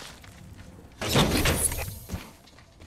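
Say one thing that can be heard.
A loot crate opens with a burst of rustling and clanking.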